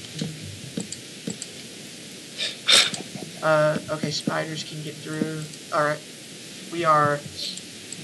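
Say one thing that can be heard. Wooden blocks thud softly as they are placed.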